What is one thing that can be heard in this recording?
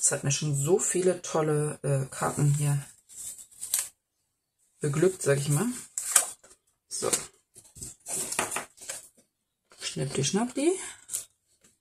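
Paper cards rustle and slide as they are handled.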